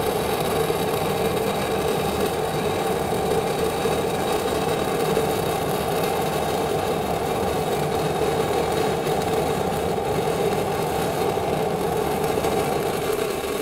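A stick welding arc crackles and sputters on a steel pipe.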